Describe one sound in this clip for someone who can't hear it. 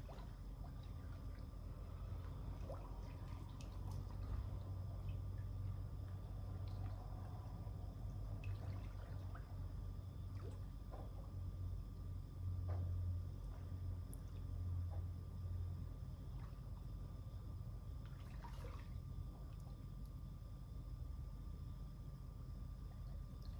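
Pool water laps and splashes softly.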